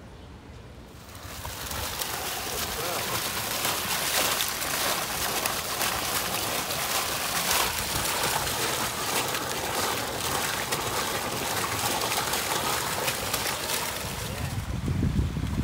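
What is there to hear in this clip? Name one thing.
Water splashes steadily in a fountain.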